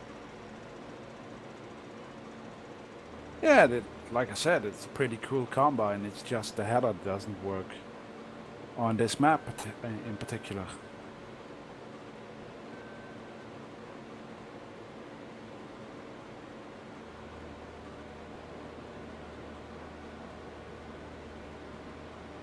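A combine harvester's engine hums steadily.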